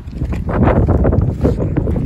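Flip-flops slap on dry ground as a person walks.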